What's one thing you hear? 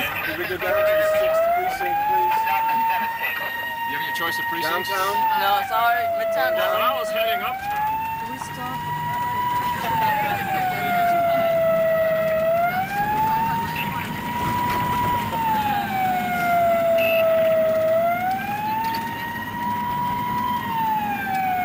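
A car engine hums steadily as the car drives.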